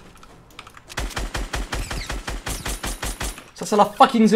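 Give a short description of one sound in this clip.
Rapid gunshots fire in quick succession.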